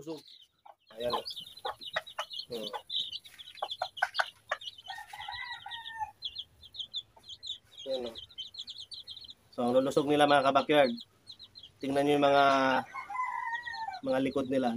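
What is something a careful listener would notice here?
Chicks cheep rapidly and high.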